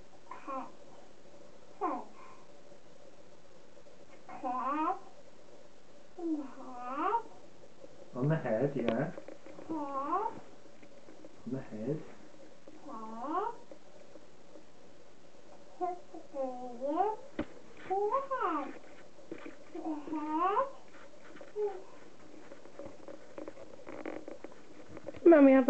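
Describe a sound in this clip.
A toddler babbles and squeals in short, sing-song bursts close by.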